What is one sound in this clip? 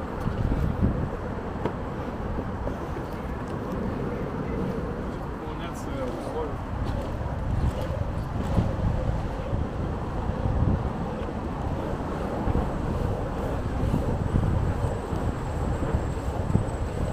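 Small wheels roll and hum on asphalt.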